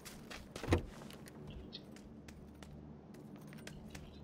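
Footsteps thump across a wooden floor indoors.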